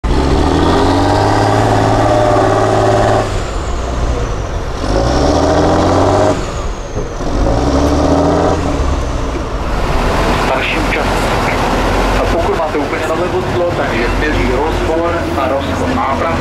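Big tyres churn and splash through thick mud.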